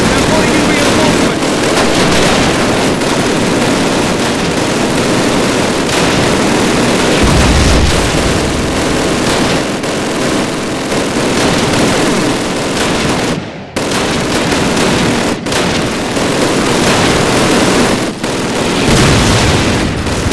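Battle noise roars steadily with distant gunfire.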